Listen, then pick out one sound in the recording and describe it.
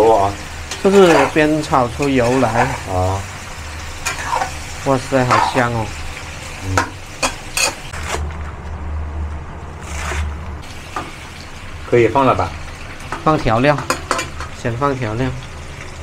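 A metal spatula scrapes and clatters in a pan.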